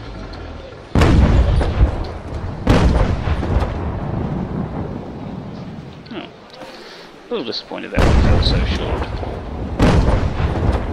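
Cannons boom several times.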